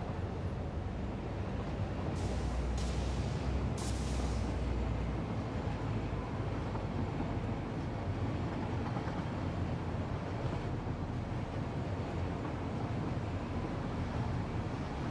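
A train rumbles steadily along a track.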